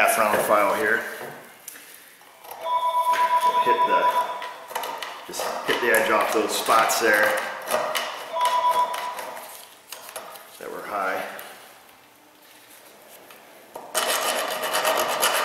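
A metal tool scrapes and clicks against a metal joint.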